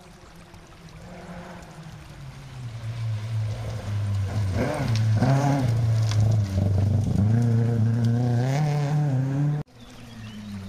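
A rally car engine roars and revs hard as the car races past.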